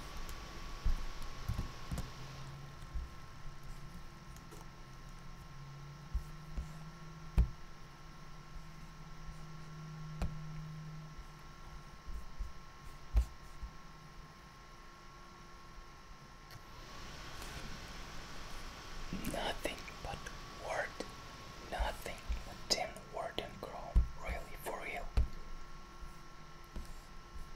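Keyboard keys click softly as someone types.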